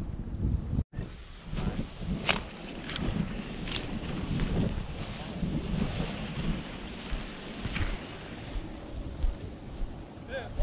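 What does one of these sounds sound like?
Tall grass rustles and swishes as someone pushes through it.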